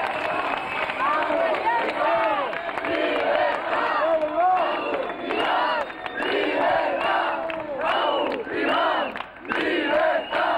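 A crowd of people shouts and chants loudly outdoors.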